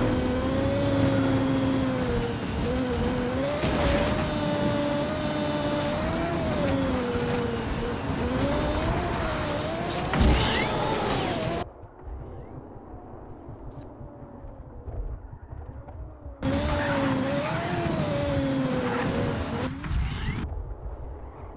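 A race car engine whines loudly, its pitch rising and falling with speed.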